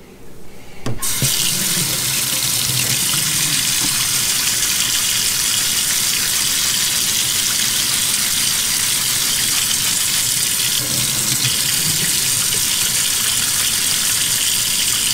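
Water runs from a tap and splashes into a metal sink.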